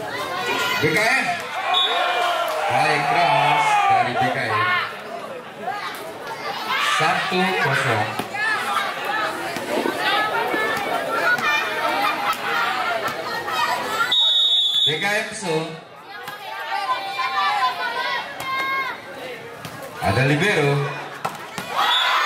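A volleyball is struck with thuds of hands.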